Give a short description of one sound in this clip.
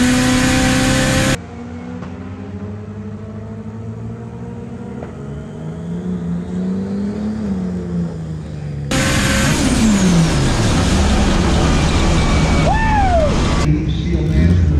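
A race car engine roars loudly inside the cabin.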